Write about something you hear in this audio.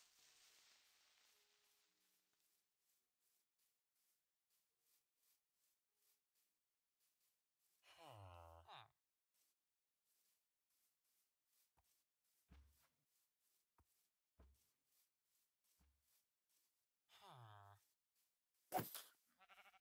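Footsteps crunch steadily on grass.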